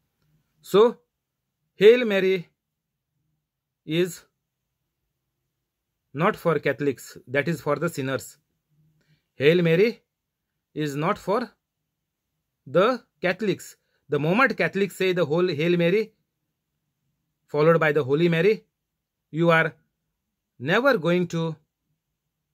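A middle-aged man speaks calmly and close up, in short phrases with pauses.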